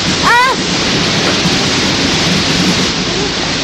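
A waterfall roars steadily.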